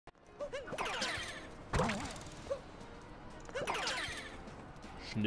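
Bright, springy game sound effects chirp as a character leaps and spins.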